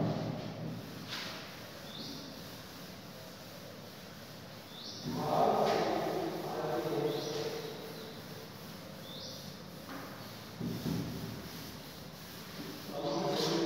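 A cloth duster rubs across a chalkboard.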